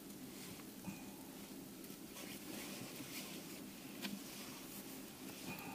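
Fabric rustles as a bag is handled.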